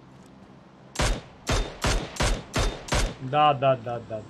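A rifle fires a quick series of shots.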